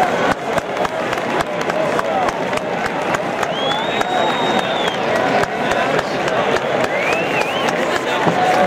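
A large crowd cheers and roars in an open stadium.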